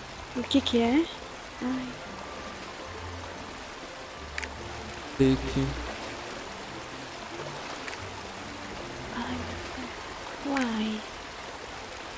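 A young woman speaks in short bursts into a microphone.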